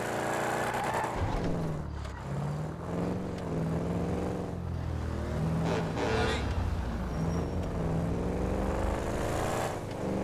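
A car engine hums and revs up and down as the car drives along.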